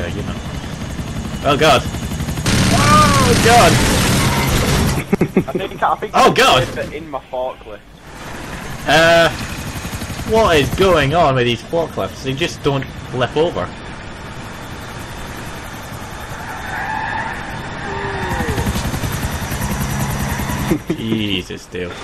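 A forklift engine hums steadily.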